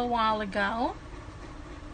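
A woman's voice rises briefly, close by.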